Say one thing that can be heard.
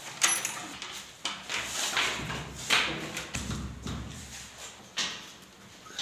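A lever door handle clicks as it is pressed down and released.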